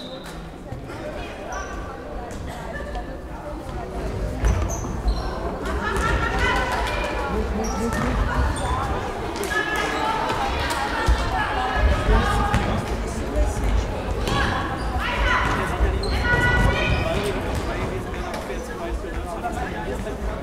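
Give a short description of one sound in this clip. A ball thuds on the floor as it is kicked.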